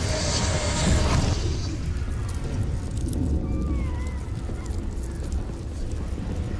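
A low, rushing rumble of fast movement goes on throughout.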